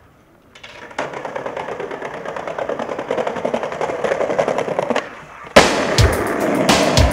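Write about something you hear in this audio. Skateboard wheels roll over pavement.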